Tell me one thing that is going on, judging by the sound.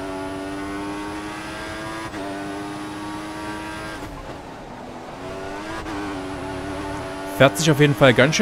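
A racing car engine whines at high revs, shifting gears up and down.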